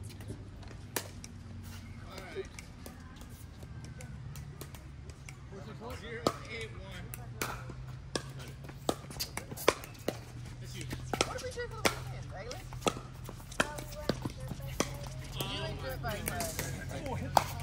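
Paddles strike a plastic ball with sharp pops, back and forth.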